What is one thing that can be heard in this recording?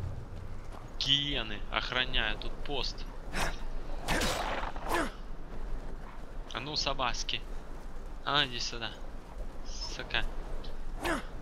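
A large beast snarls and growls.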